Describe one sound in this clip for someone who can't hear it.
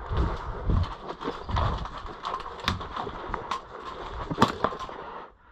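An airsoft pistol fires sharp shots in short bursts.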